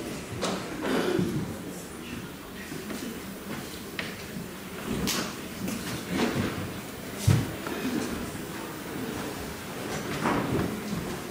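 A man speaks calmly through a microphone in an echoing hall.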